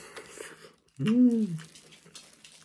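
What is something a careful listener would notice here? A young man hums with pleasure, close by.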